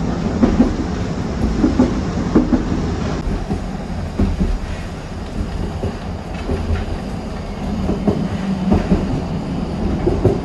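A train carriage rumbles and rattles steadily along the track.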